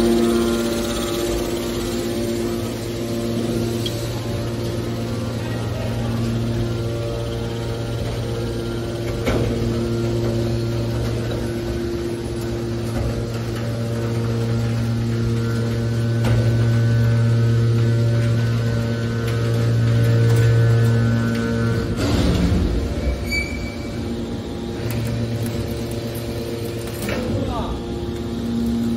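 An electric motor hums steadily and loudly.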